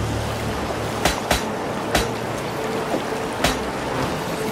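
Short sharp clicks sound as game items are picked up and dropped.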